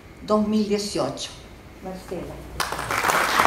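A woman speaks into a microphone, heard through a loudspeaker in a large hall.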